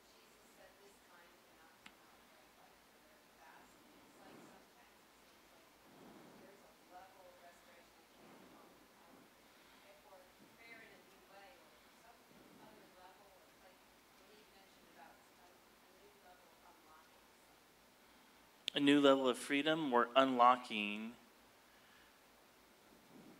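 A man speaks calmly at a distance in a large, echoing room.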